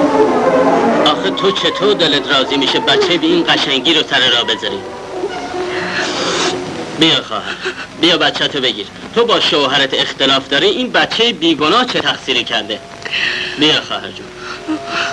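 A man talks quietly close by.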